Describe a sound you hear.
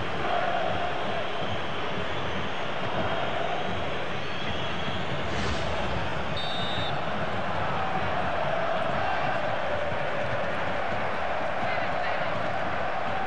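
A stadium crowd roars and chants steadily throughout.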